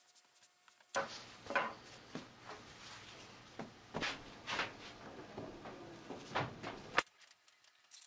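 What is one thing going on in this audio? Soft pieces of felt rustle and flap as they are handled.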